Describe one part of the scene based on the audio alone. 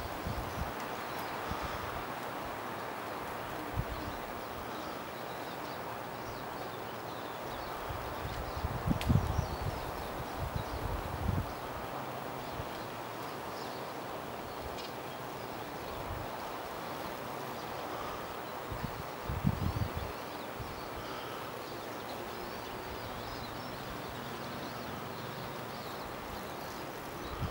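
A child's bicycle rolls faintly over pavement in the distance.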